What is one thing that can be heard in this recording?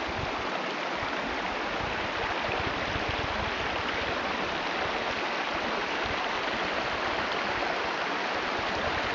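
Wind rushes steadily through leafy trees outdoors.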